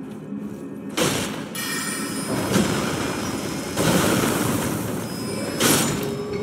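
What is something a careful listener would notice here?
A magic spell whooshes and shimmers loudly.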